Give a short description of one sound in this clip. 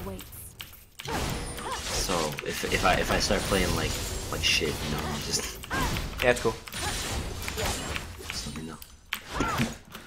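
Game sound effects clash and zap during a fight.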